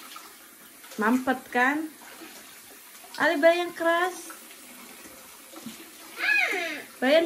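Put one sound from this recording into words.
A young child talks and sings in a high voice close by.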